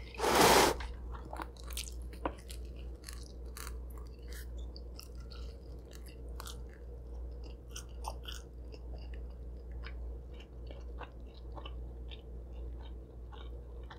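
A young woman chews and smacks her lips close to a microphone.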